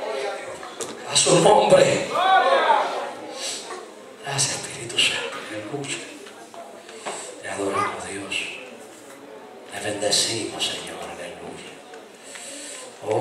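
A man preaches with animation through loudspeakers in a large echoing hall.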